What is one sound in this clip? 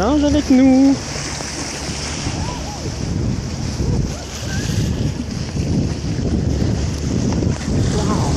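Dolphins splash as they surface beside a boat.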